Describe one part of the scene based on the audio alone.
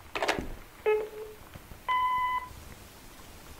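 An answering machine beeps.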